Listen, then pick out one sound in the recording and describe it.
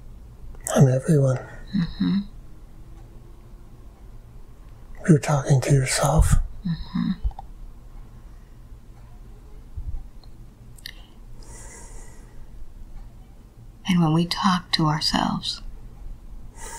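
An elderly man speaks slowly and drowsily, close up, in short bursts with pauses.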